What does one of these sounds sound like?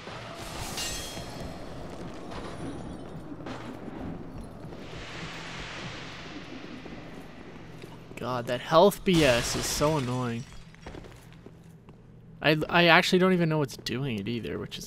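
Armoured footsteps clank on stone as a knight runs.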